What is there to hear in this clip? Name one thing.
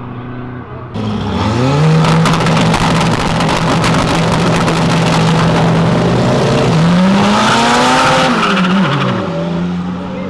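Car engines idle and rev loudly at close range.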